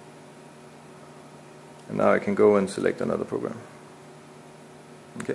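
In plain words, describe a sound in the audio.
A finger presses keys on a handheld control panel with soft clicks.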